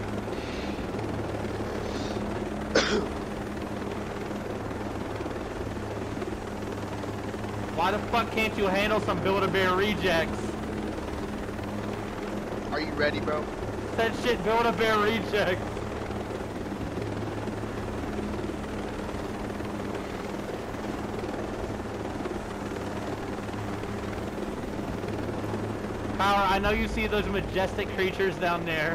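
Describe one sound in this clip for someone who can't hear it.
A helicopter's rotors and engine drone steadily.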